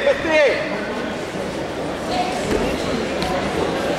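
Wrestlers thump down onto a mat.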